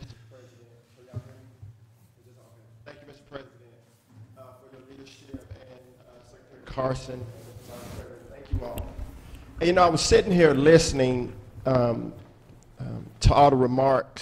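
A man speaks steadily through a microphone.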